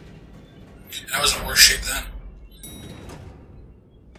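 Metal elevator doors slide open with a rumble.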